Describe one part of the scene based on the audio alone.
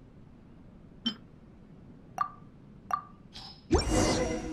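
Short clicks sound several times.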